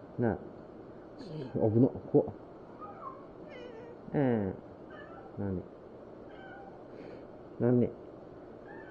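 A kitten meows loudly and repeatedly, close by.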